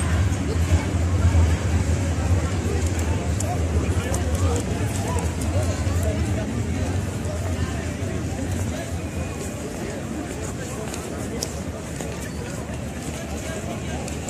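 A crowd murmurs with many voices outdoors.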